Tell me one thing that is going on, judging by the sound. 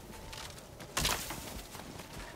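A sword slashes through bamboo with a sharp crack.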